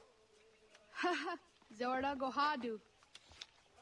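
A boy speaks up clearly, close by.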